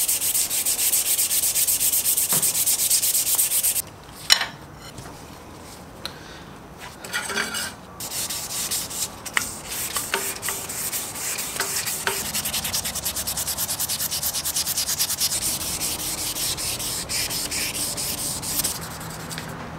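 Sandpaper rubs quickly back and forth on a metal rod with a rhythmic scratchy hiss.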